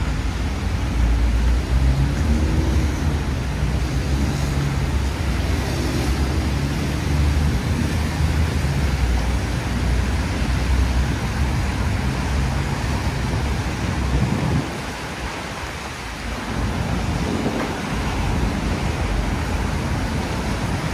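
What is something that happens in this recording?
City traffic rumbles steadily past on a street outdoors.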